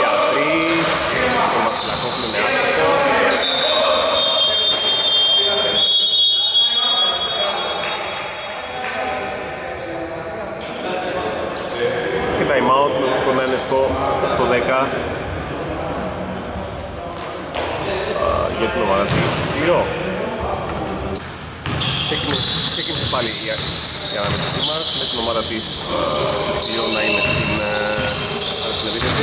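Men shout and call out to each other during play.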